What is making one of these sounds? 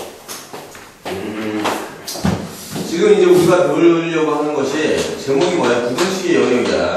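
A man speaks with animation into a microphone in an echoing room.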